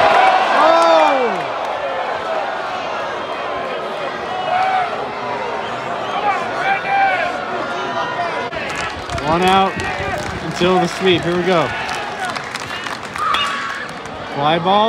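A large outdoor crowd chatters and calls out throughout.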